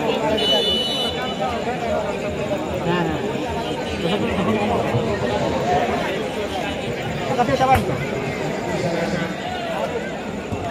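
A large outdoor crowd chatters and shouts steadily.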